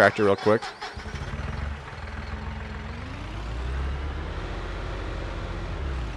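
A tractor engine rumbles and revs up.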